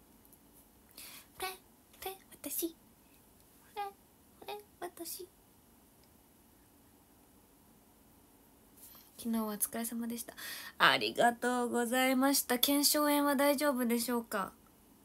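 A young woman speaks close to a microphone, in short bursts and then with animation.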